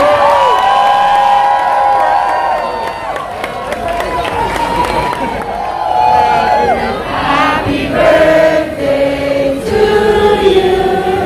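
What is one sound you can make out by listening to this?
A large crowd sings together loudly in a big echoing hall.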